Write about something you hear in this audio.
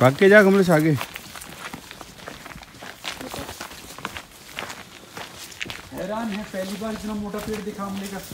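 Leaves rustle as people brush past bushes.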